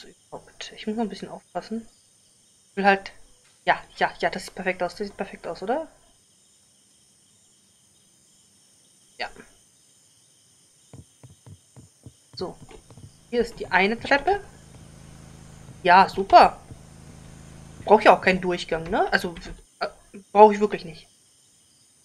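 A woman talks with animation into a close microphone.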